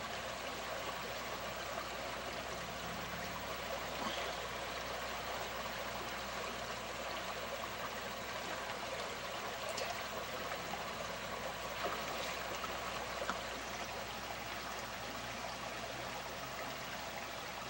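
A river flows and ripples steadily outdoors.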